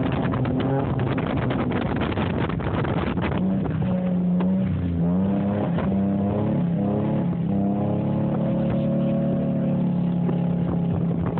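Tyres crunch and slide over packed snow.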